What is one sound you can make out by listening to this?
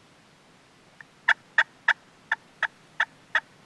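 A hand-worked turkey call gives short, sharp clucks.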